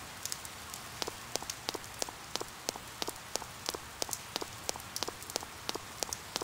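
Footsteps patter steadily on pavement.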